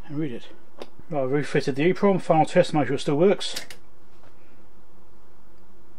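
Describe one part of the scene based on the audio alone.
A power switch clicks on.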